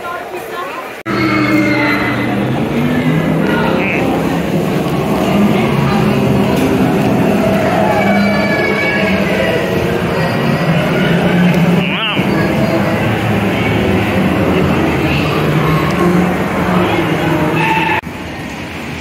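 Young children talk and babble close by.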